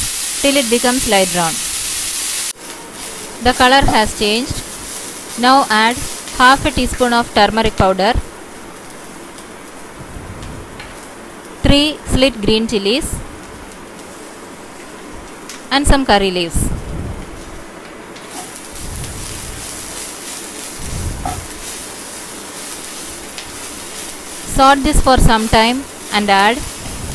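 Onions sizzle softly in a hot pan.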